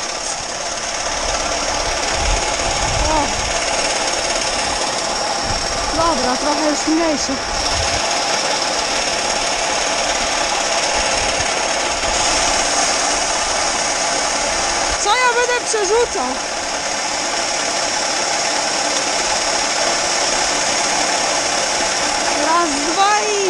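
An auger motor hums steadily.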